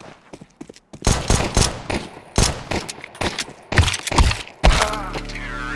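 Pistol shots crack rapidly in loud bursts.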